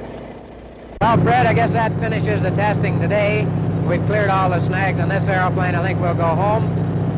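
An aircraft engine hums steadily from inside the cabin.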